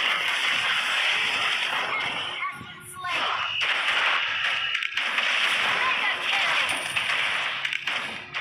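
Game spell effects whoosh and crackle in a fast battle.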